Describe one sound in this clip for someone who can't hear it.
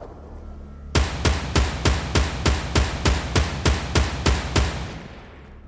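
Rapid gunshots fire in a steady burst.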